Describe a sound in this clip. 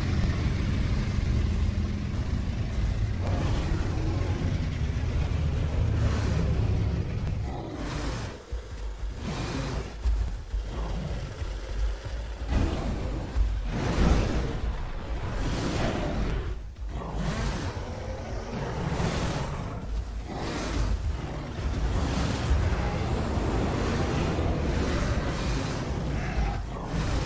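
Large beasts growl and roar close by.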